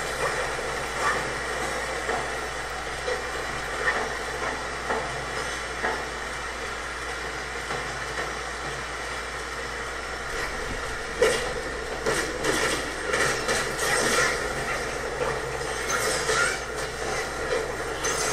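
Electric magic crackles and hums steadily.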